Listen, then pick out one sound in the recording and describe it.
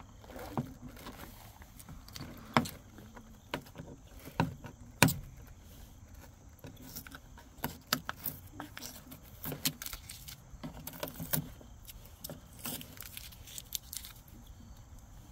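Plastic parts click and tap as hands fit them into a plastic housing.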